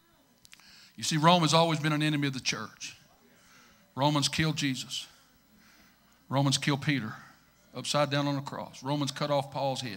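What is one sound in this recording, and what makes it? A middle-aged man preaches with animation into a microphone, heard through loudspeakers in a large echoing hall.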